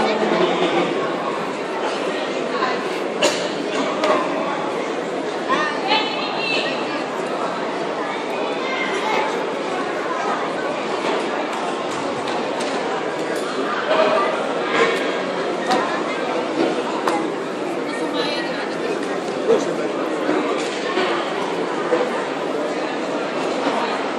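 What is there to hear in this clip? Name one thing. A crowd of spectators chatters and calls out in a large echoing hall.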